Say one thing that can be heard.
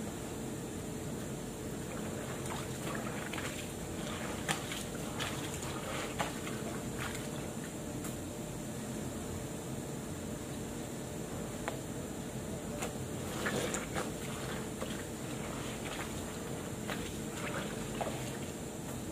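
Fabric rustles and flaps as clothes are handled.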